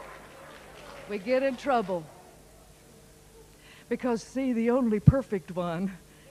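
A middle-aged woman speaks into a microphone.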